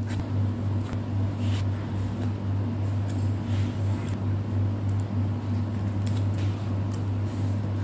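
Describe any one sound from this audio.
Tweezers tap lightly on paper.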